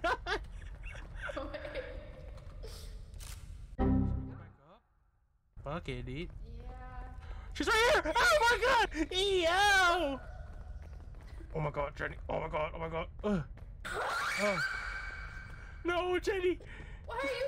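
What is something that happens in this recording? A young woman laughs loudly into a close microphone.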